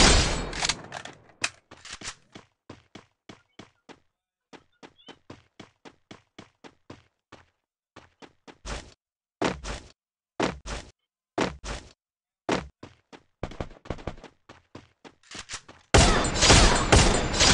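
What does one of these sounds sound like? Footsteps run over the ground.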